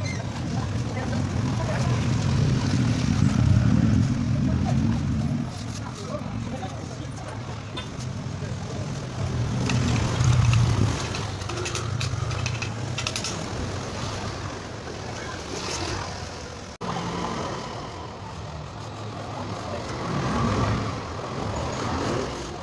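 A float rubs and scrapes across wet cement.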